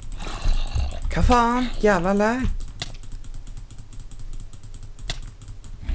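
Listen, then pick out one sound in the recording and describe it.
A zombie growls and groans close by.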